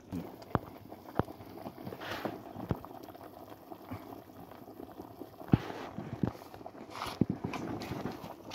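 Water bubbles at a rolling boil in a pot.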